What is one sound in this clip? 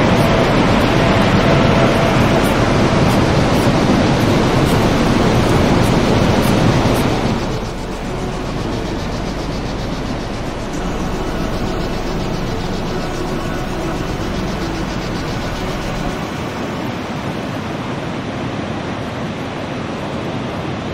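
A waterfall roars steadily far below.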